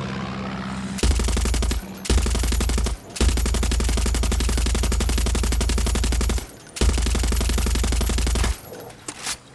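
A mounted machine gun fires rapid, loud bursts.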